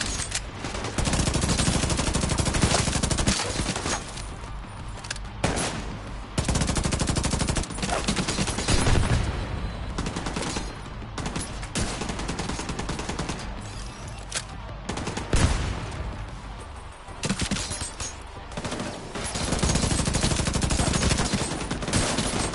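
Gunfire rattles in rapid bursts, close by.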